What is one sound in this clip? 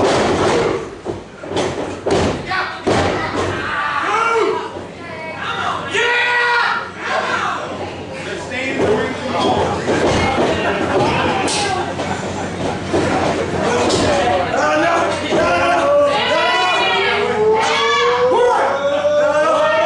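Wrestlers thud onto a wrestling ring mat.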